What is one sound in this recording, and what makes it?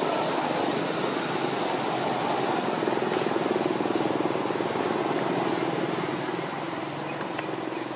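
Dry leaves rustle as a small monkey scrambles over them.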